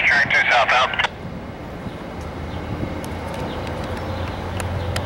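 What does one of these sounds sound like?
A train rumbles slowly away.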